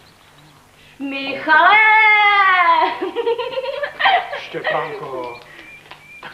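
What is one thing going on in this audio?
A young man calls out loudly nearby.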